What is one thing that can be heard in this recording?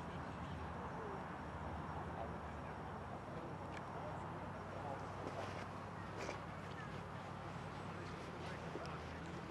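A steady low rumble of wind blows outdoors.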